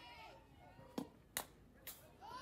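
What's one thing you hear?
A softball smacks into a catcher's mitt.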